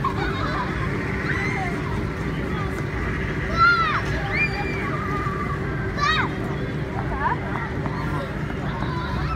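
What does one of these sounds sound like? Young children shout and squeal playfully in the distance.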